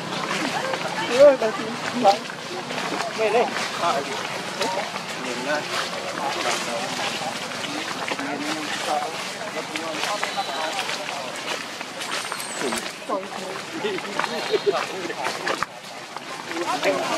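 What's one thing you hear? A small monkey's footsteps rustle through dry leaves.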